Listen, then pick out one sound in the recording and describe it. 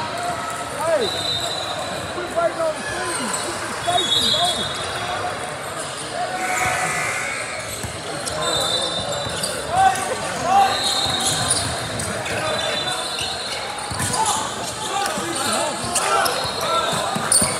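Players call out and shout in a large echoing gym.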